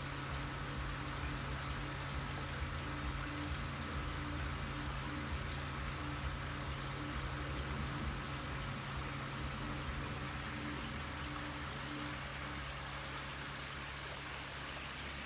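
Water bubbles and churns steadily in a tank.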